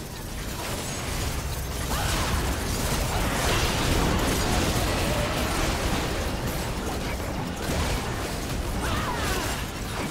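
Spell blasts whoosh and crackle in a video game battle.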